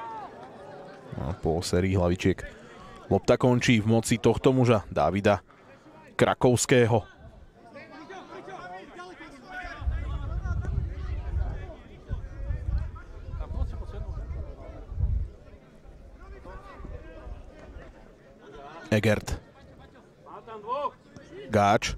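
A crowd of spectators murmurs in the distance outdoors.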